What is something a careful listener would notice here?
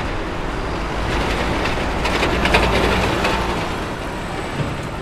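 A bus drives past close by, loud and then fading.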